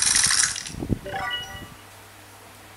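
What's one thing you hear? A tablet game plays a short chime of rising notes through a small speaker.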